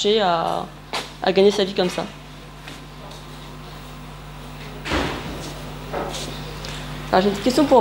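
A young woman speaks to an audience, pausing between phrases.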